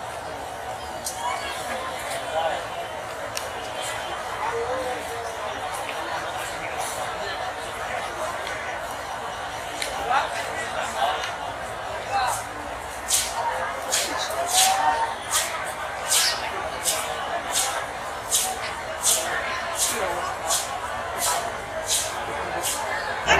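A large crowd of men chatters and shouts outdoors.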